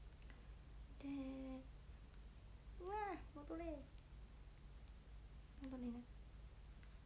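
A young woman speaks softly in short bursts close by.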